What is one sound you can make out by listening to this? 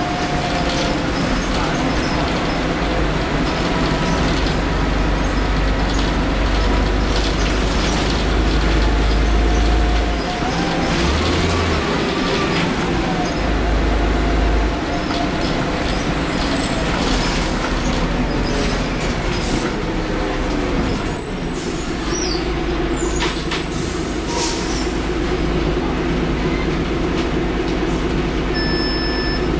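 A bus engine rumbles and whines steadily while the bus drives along.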